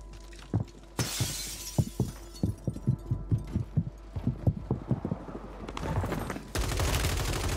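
Footsteps thud quickly across hard floors.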